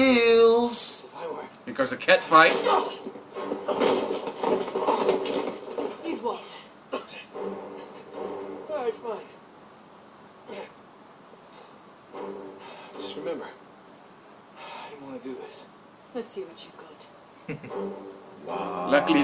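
Two young men react and talk with each other through a microphone.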